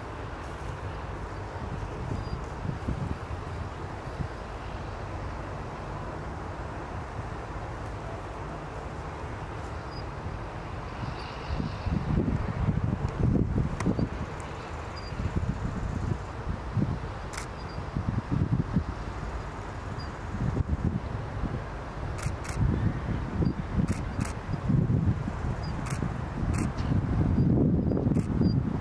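Horses' hooves thud on soft sand.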